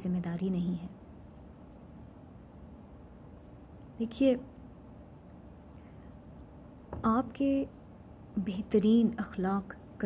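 A woman speaks calmly and close to the microphone, with pauses.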